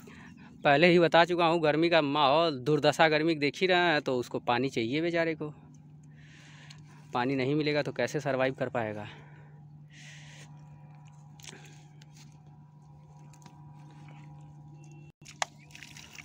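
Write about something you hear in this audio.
Hands scoop and squelch in wet soil.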